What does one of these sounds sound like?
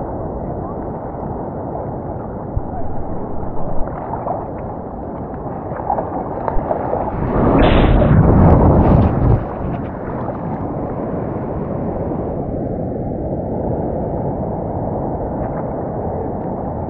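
Water sloshes and laps close by throughout.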